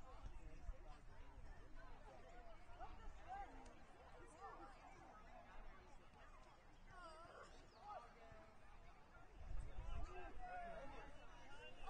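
Young players shout and call to each other in the distance outdoors.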